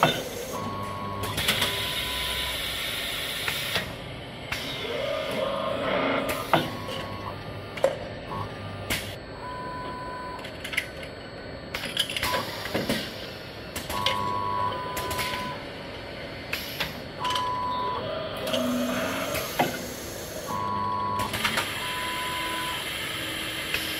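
Metal parts of a machine clack and click repeatedly.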